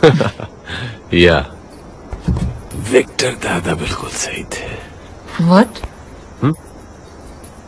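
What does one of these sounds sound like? A young woman speaks playfully close by.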